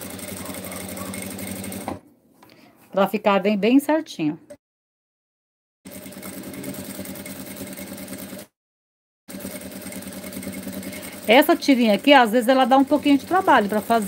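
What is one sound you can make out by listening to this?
A sewing machine runs with a steady, rapid stitching hum.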